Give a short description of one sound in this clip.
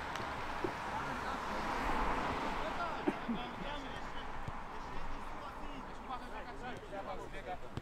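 Young men shout to each other across an open field outdoors.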